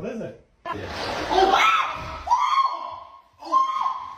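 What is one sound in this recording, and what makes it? A man shrieks in fright.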